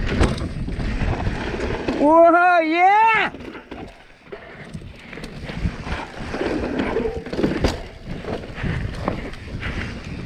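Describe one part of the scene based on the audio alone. Bicycle tyres crunch and roll over a dirt trail.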